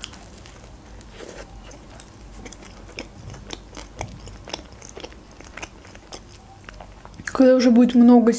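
A young woman chews food with soft, wet mouth sounds close to a microphone.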